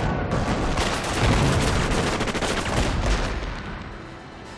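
Explosions crackle and roar with a rushing blast.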